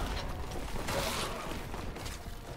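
A chainsaw revs and tears through flesh.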